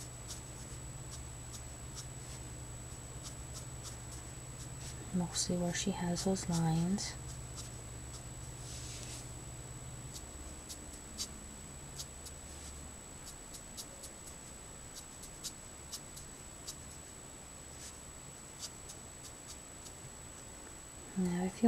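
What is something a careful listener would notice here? A marker pen scratches softly across paper.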